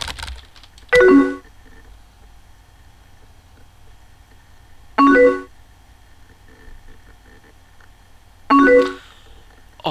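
A short electronic chime rings as a chat message arrives.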